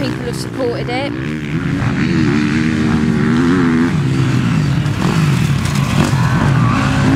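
A motocross bike engine revs loudly, rising and falling in pitch.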